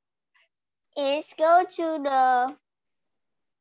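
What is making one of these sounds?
A young girl repeats words slowly over an online call.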